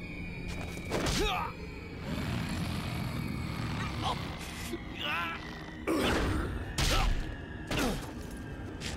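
Heavy blows and thuds land in a scuffle.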